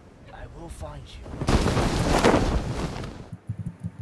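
Boots land and thud on a tiled roof.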